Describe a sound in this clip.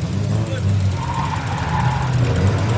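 Car tyres squeal on pavement.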